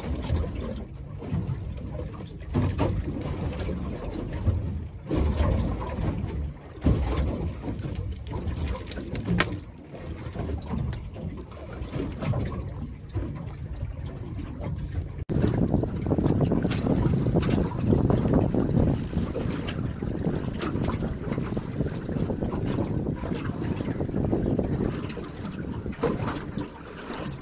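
Wind buffets loudly outdoors on open water.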